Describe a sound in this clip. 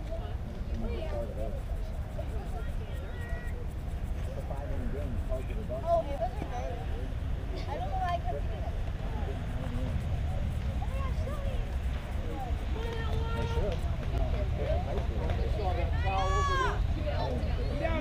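Wind rumbles across an open field.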